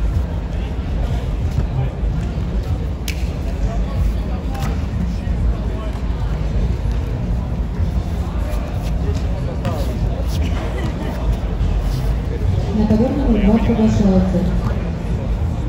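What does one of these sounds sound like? A crowd murmurs and chatters outdoors throughout.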